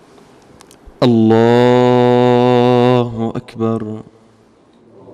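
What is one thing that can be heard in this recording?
A young man chants a long, drawn-out call loudly into a microphone in an echoing hall.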